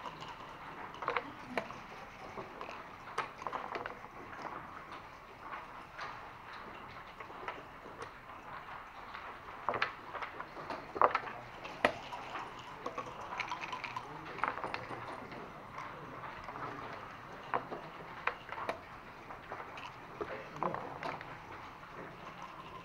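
Game checkers click and clatter as hands move them.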